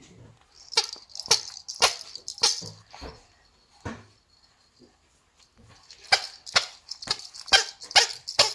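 A plastic toy hammer taps and knocks sharply.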